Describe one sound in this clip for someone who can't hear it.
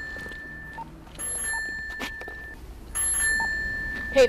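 A pedestrian crossing signal beeps at a steady pace.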